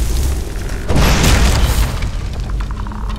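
Fire bursts with a loud whoosh.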